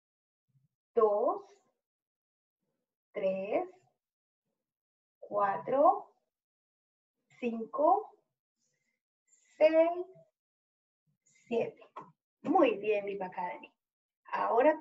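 A woman speaks clearly and slowly, in short phrases with pauses, close to the microphone.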